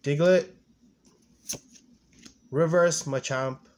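A trading card rustles softly as a hand swaps it for another.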